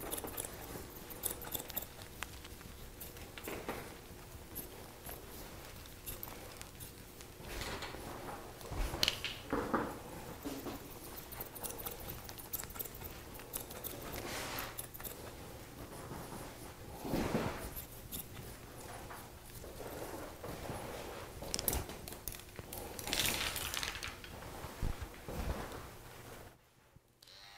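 Scissors snip quickly through hair close by.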